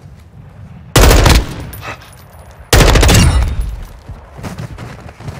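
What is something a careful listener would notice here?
A rifle fires loud bursts close by.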